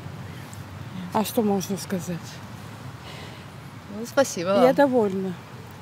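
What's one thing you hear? An elderly woman speaks calmly and close by, in short bursts.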